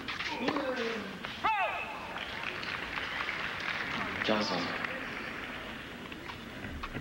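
A crowd applauds in a large open stadium.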